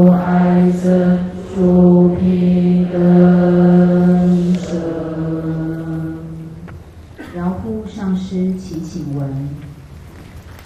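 An elderly man chants in a low, steady voice through a microphone.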